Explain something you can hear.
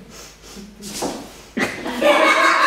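High heels stamp on a wooden floor.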